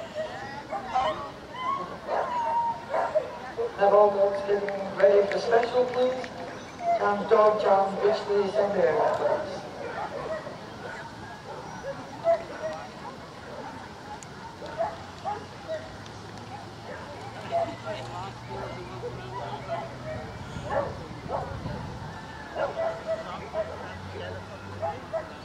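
Men talk calmly close by outdoors.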